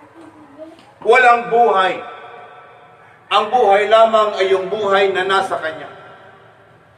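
A man speaks loudly and with animation in a slightly echoing room.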